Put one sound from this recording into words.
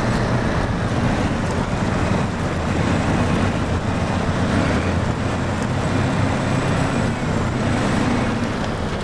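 A heavy truck engine rumbles steadily as it drives.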